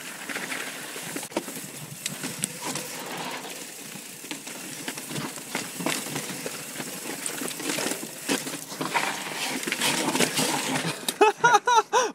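Bike tyres crunch and rattle over rocky ground.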